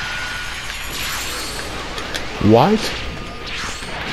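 An energy blast whooshes and booms.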